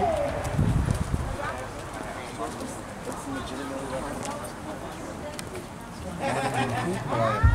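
A man talks casually nearby outdoors.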